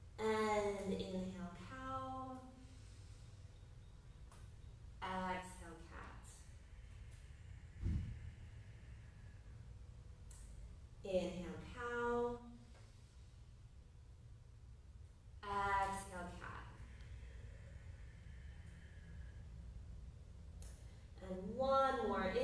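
A woman speaks calmly in short phrases.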